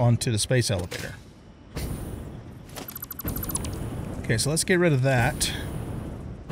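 A man talks casually into a headset microphone.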